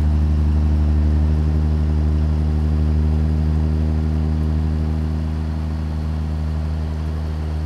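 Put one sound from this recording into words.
A vehicle engine drones steadily from inside the cab.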